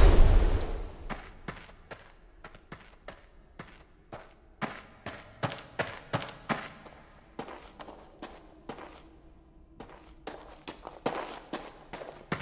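Footsteps tap on stone floor, echoing slightly.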